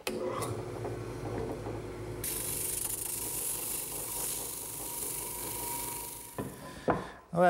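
A drum sander whirs steadily.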